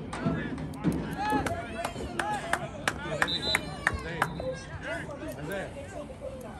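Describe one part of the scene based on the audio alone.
Spectators shout and cheer from the sideline outdoors.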